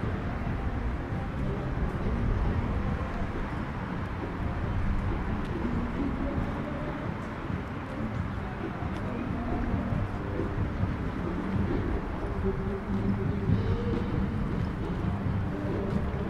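A group of men and women chatter nearby.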